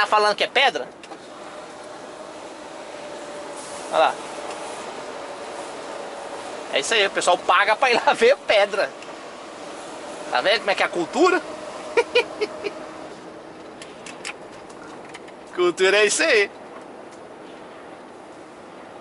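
A truck engine hums steadily from inside the cab as it drives along a road.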